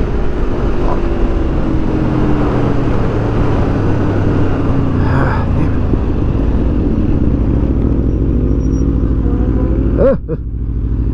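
A motorcycle engine roars while riding.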